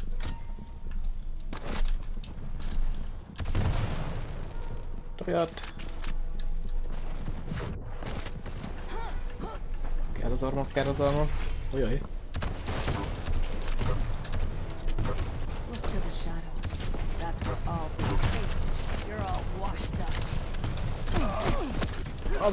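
Gunfire bursts and energy weapon zaps ring out.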